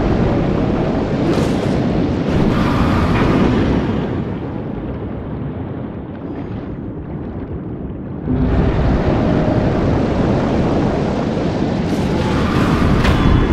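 A sword slashes through water with a swishing burst.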